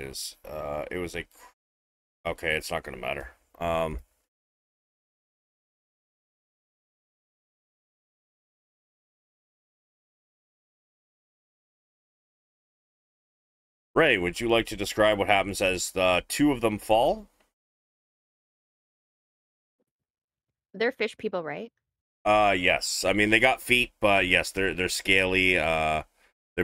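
A man talks with animation into a close microphone, with long pauses.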